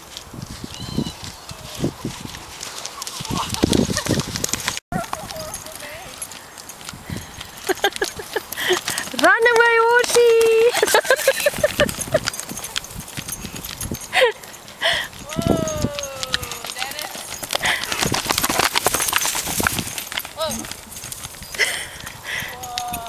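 A horse's hooves thud as it gallops on grass.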